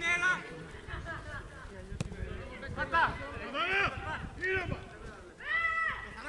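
Men shout to each other across an open outdoor football pitch.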